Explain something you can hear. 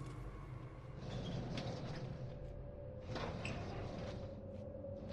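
A metal drawer slides open with a rattle.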